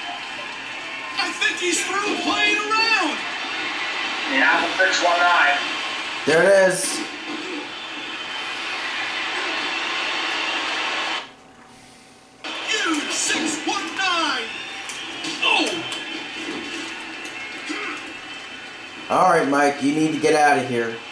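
A crowd cheers and roars through a television speaker.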